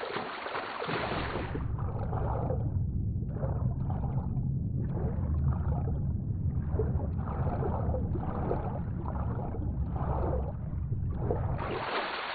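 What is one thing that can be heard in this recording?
Water rushes and rumbles, muffled, as a swimmer moves underwater.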